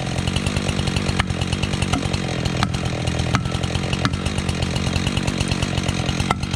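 A chainsaw engine idles close by with a rapid, steady putter.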